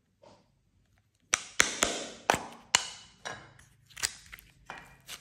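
A plastic mould clicks and taps.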